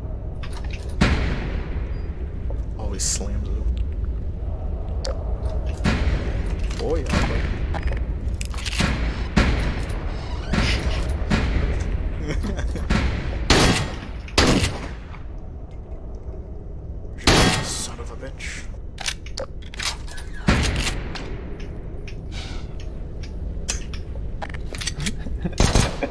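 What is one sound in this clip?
Gunshots ring out in sharp bursts, echoing off hard walls.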